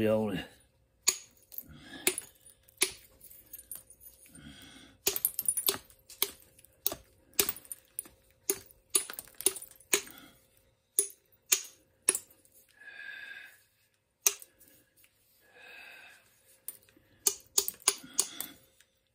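A mallet taps sharply on stone, knocking flakes off again and again.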